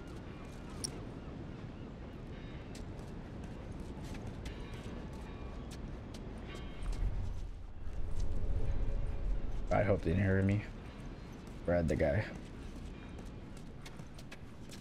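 Soft footsteps pad across concrete.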